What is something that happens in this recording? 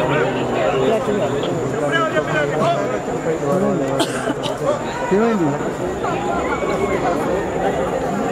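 A crowd of men talk and call out over each other outdoors.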